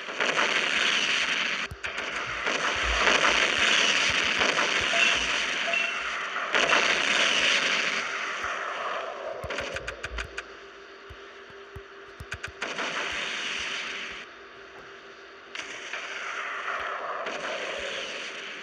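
Naval guns fire in loud booming bursts.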